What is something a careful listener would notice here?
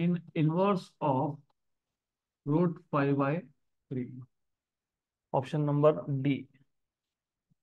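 A man explains calmly into a close microphone, in short phrases with pauses.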